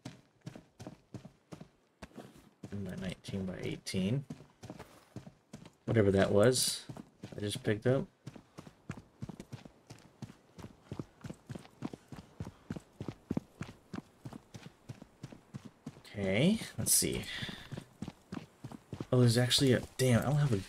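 Footsteps tread quickly and evenly on hard ground.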